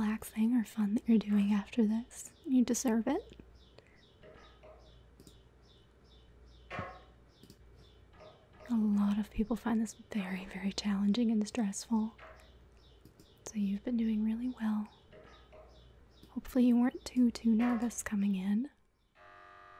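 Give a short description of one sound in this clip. A young woman speaks calmly into a microphone, close up and clear.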